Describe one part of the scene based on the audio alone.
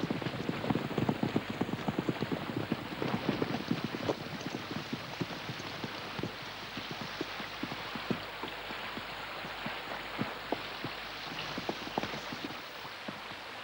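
Horses' hooves clatter.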